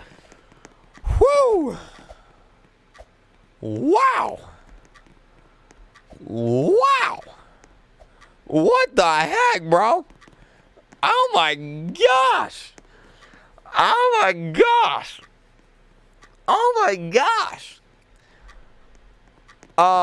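A young man shouts and wails loudly and theatrically into a close microphone, in bursts.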